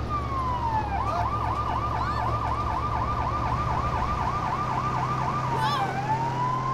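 A siren yelps rapidly.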